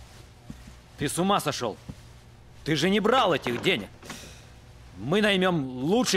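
A man speaks loudly and angrily nearby.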